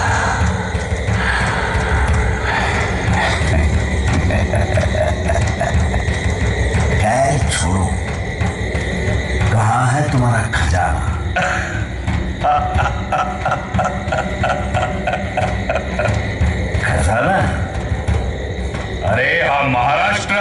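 Men shout and chant loudly on a stage, heard through loudspeakers in a large open space.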